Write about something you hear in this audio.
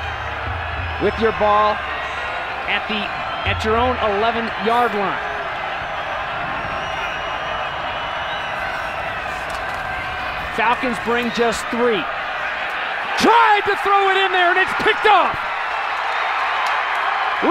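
A large crowd murmurs and cheers steadily outdoors.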